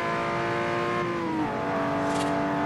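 A racing car engine drops in pitch as it shifts up a gear.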